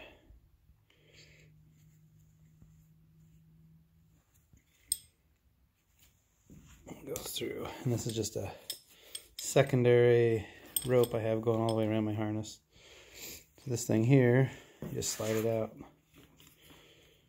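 A rope rustles softly as it is handled.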